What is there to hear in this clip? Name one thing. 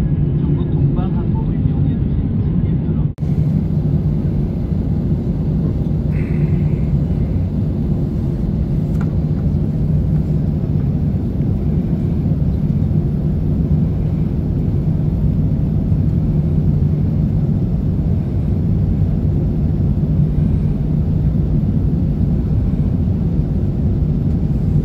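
Tyres rumble over the runway.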